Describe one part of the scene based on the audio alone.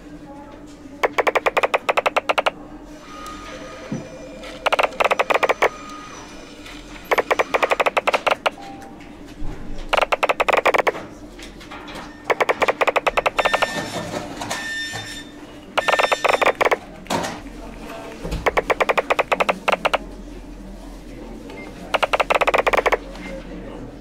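Rapid bright plinking ticks sound in short bursts.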